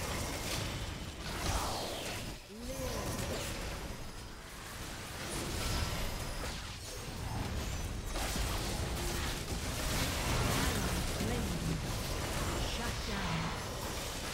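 Game spell effects whoosh and blast in quick bursts.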